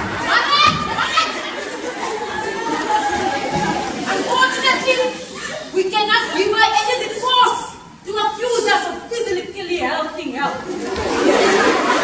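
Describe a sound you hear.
A young woman talks with animation through a microphone in an echoing hall.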